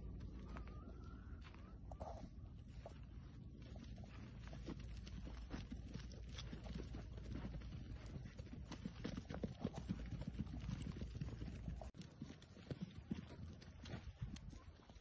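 Hooves patter and scuff on dry dirt.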